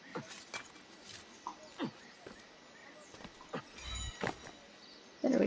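Hands and boots scrape and knock on stone while climbing.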